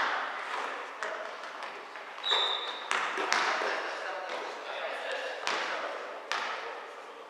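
A basketball thumps on a wooden floor, echoing in a large hall.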